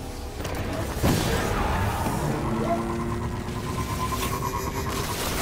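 A hover bike engine hums and whines steadily as it speeds along.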